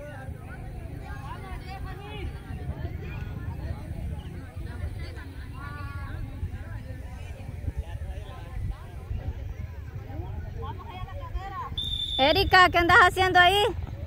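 Young people shout and call to each other across an open field at a distance.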